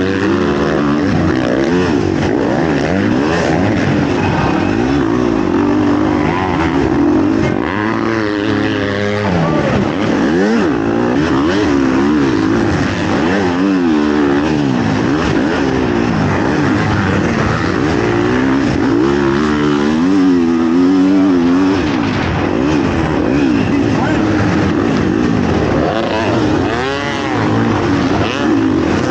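Other dirt bike engines roar nearby.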